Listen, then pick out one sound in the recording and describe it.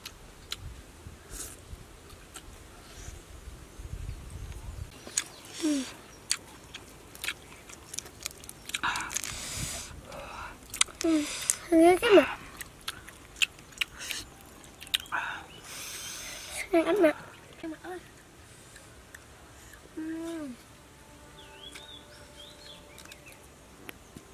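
A woman chews food with soft smacking sounds.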